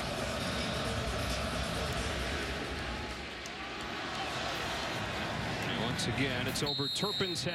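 A large crowd roars and cheers in a big echoing stadium.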